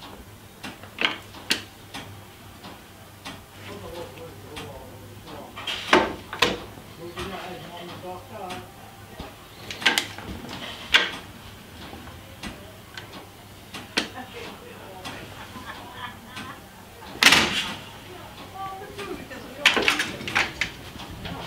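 Heavy steel levers of a mechanical signal box clank as they are thrown.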